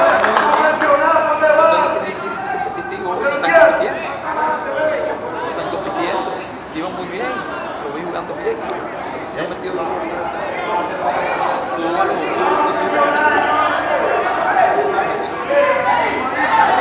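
Young players shout to each other outdoors.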